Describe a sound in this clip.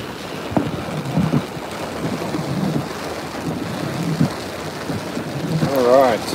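Strong wind roars outdoors.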